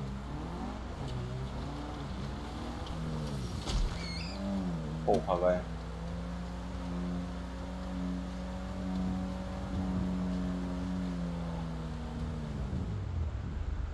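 A car engine revs and hums.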